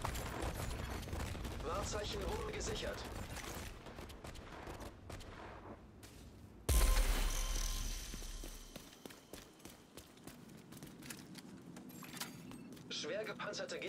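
Heavy footsteps thud on hard ground.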